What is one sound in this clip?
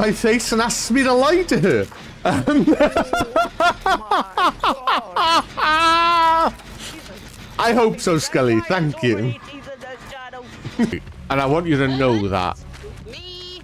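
A young man talks excitedly and loudly into a nearby microphone.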